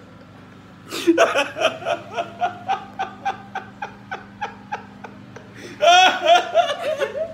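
A man laughs loudly and heartily, close by.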